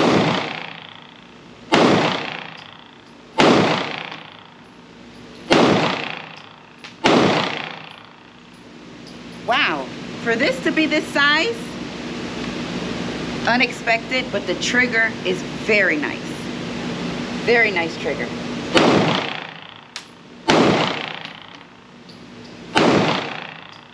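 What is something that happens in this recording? Gunshots ring out one at a time, loud and echoing.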